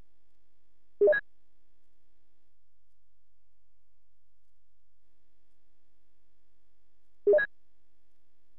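A short electronic beep sounds.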